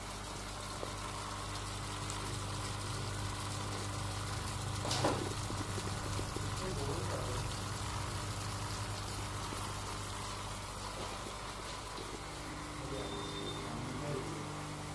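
Water trickles and splashes steadily down a wall.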